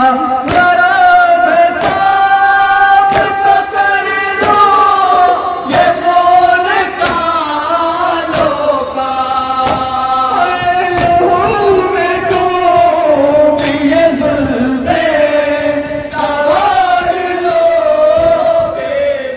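A crowd of men beat their chests in a steady rhythm.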